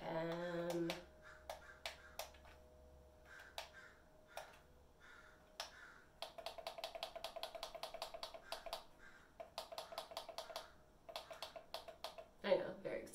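An electronic device beeps repeatedly as its buttons are pressed.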